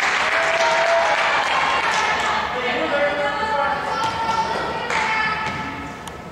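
A crowd of young girls and adults shouts and cheers in a large echoing gym.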